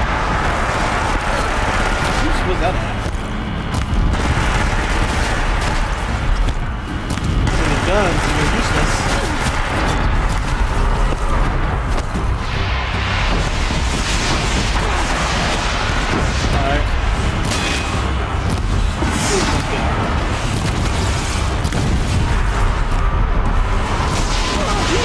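Game gunfire and explosions boom and crackle in quick bursts.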